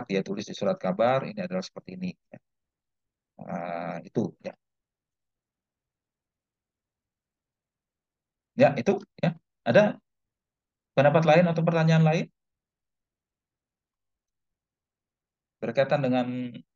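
A man talks calmly over an online call, in bursts with pauses.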